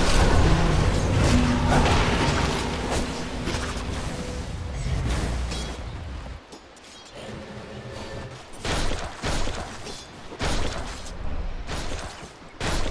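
Weapons clang as fighters strike each other.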